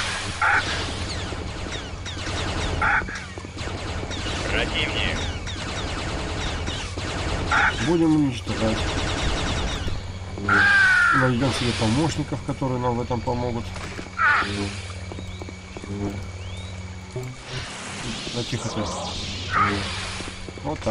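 A lightsaber hums steadily and whooshes as it swings.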